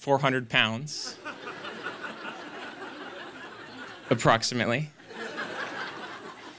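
An audience laughs and murmurs.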